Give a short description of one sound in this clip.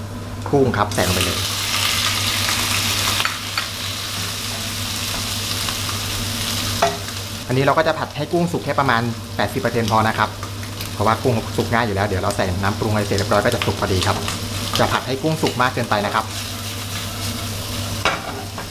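Raw shrimp drop into hot oil and sizzle loudly.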